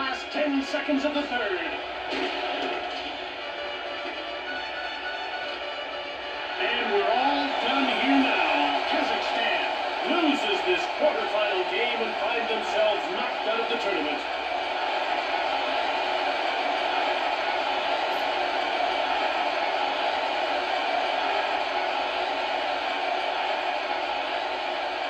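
An arena crowd roars through a television speaker, swelling loudly partway through.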